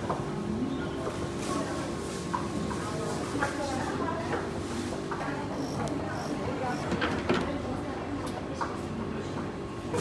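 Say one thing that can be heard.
Hands rustle through dry noodles in a bowl.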